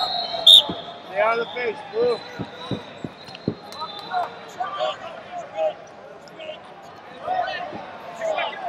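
Shoes squeak on a wrestling mat.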